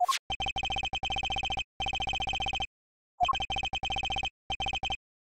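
Rapid electronic blips tick in quick bursts, with short pauses between them.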